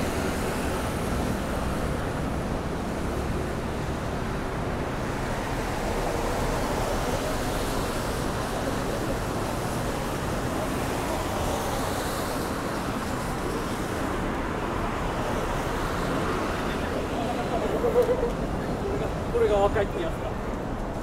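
Traffic rumbles steadily on a city street.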